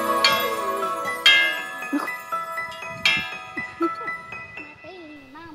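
A metal triangle bell clangs repeatedly as it is struck.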